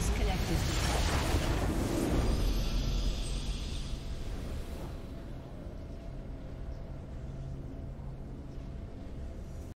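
A bright victory chime rings out and slowly fades.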